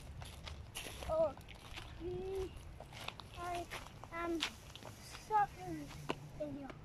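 A young child speaks nearby.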